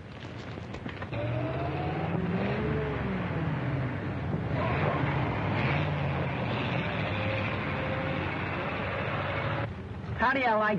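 A sedan drives up along a road at night.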